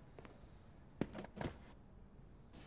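A plastic laundry basket bumps and rattles as it is set down.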